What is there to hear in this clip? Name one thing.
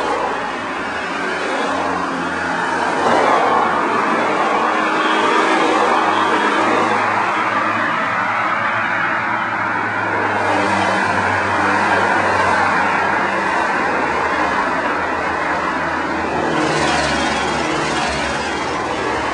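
Cars drive past one after another, close by.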